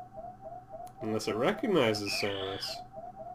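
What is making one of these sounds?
A creature lets out loud, wavering shrieks.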